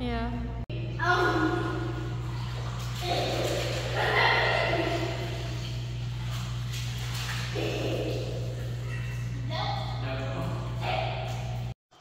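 A man talks from a distance in an echoing room.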